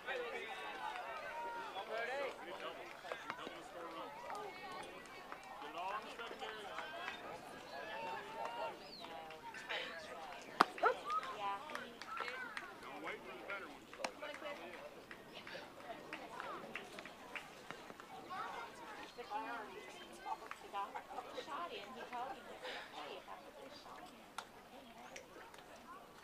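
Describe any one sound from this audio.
Young players and adults call out and chatter across an open field.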